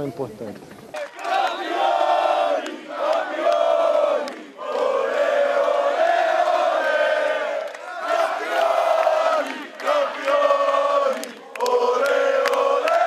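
A crowd cheers and chants loudly outdoors.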